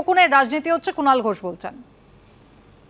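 A woman speaks clearly into a microphone, like a news presenter.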